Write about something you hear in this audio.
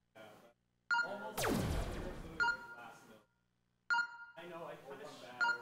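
Electronic game chimes ring out, with a falling whoosh.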